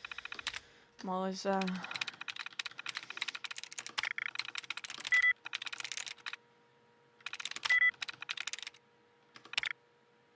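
A computer terminal chirps and clicks rapidly as keys are pressed.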